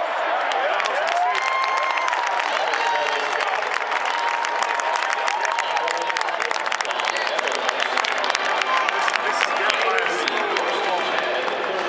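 Fans clap rapidly.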